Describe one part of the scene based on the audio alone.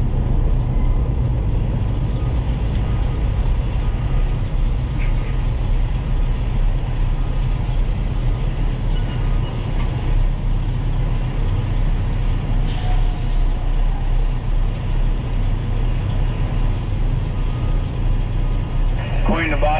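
A truck's diesel engine rumbles steadily from inside the cab.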